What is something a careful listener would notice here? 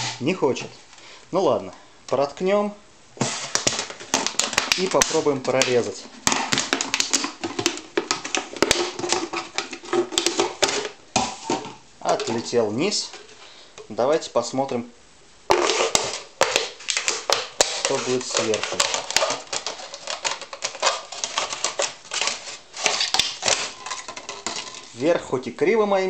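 A knife crunches and scrapes through thin plastic.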